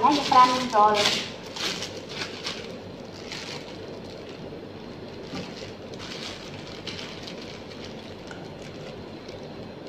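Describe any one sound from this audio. A spatula scrapes around a metal bowl.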